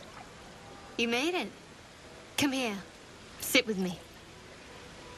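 A young woman speaks softly and invitingly, close by.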